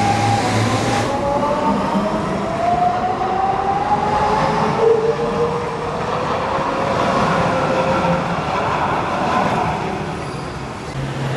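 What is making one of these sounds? Tram wheels rumble and clatter on the rails close by.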